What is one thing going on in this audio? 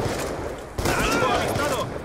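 A rifle fires a burst of gunshots.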